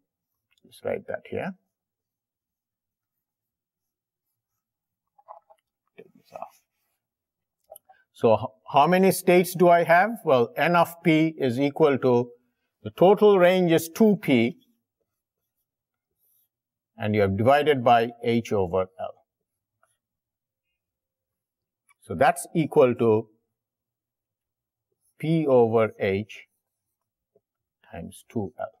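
An elderly man lectures calmly, heard close through a microphone, with pauses.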